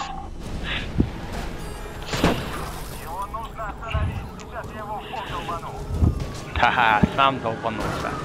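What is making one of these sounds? Cars crash and thud into each other.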